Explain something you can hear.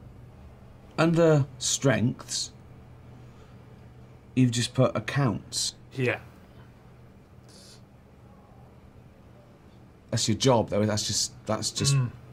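A man speaks calmly nearby, in short bursts with pauses.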